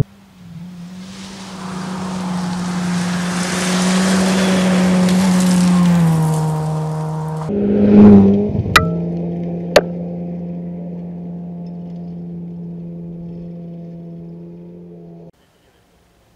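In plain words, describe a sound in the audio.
A rally car engine roars closer at high revs and then fades away.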